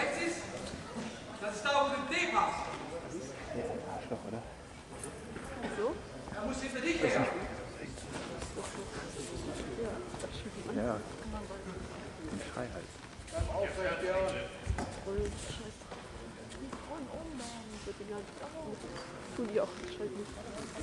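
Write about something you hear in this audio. Bare feet shuffle and thump on a mat.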